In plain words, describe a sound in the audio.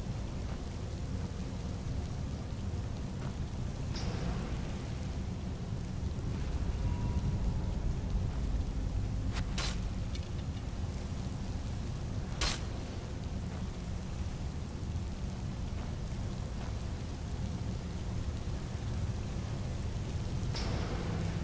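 Water rushes and roars steadily nearby.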